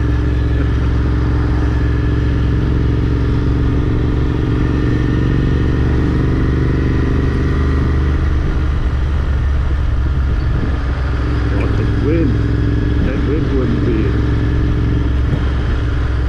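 A motorcycle engine rumbles steadily close by as it rides along.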